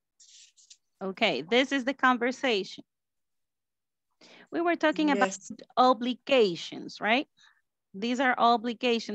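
A woman speaks clearly over an online call.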